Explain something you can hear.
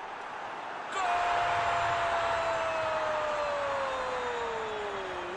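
A large stadium crowd suddenly roars loudly.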